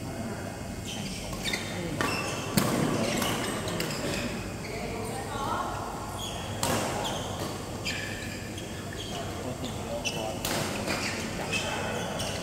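Shuttlecocks are struck with sharp pops from rackets in a large echoing hall.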